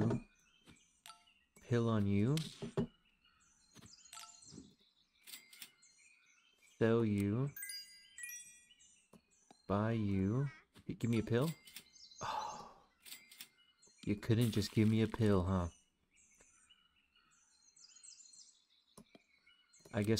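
Short cartoonish game chimes and blips sound now and then.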